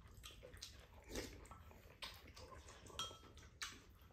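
Spoons and chopsticks clink against bowls.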